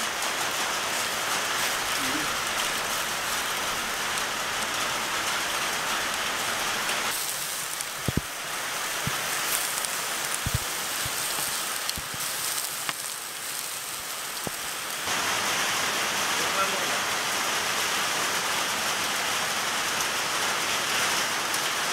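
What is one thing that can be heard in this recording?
Meat sizzles loudly on a hot griddle.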